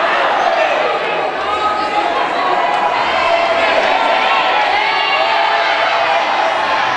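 A large crowd chatters loudly all around in an echoing hall.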